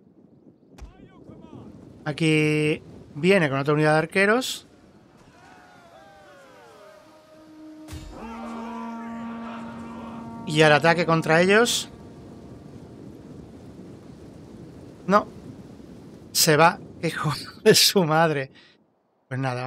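Soldiers clash and shout in a distant battle.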